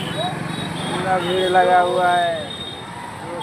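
A man calls out loudly close by.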